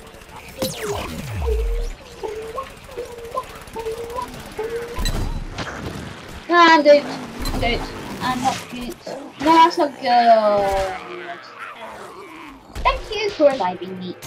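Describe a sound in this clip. Explosive blasts boom in a video game battle.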